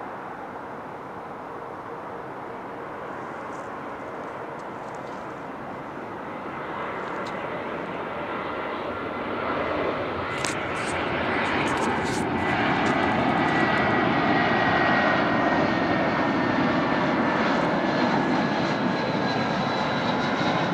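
A twin-engine jet airliner roars on its landing approach, growing louder as it nears, with a high engine whine.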